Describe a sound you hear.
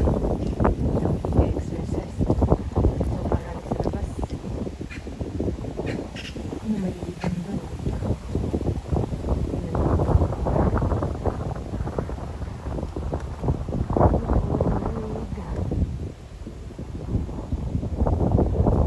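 Wind buffets loudly outdoors, rumbling and gusting.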